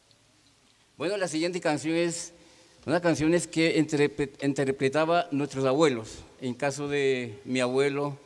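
Women sing loudly together through a microphone.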